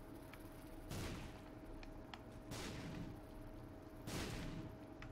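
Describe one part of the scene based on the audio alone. Explosions boom loudly, one after another.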